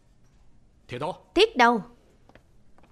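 A man says a few short words.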